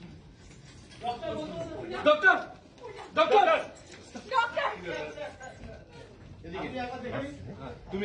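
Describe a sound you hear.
Several men and women talk over one another.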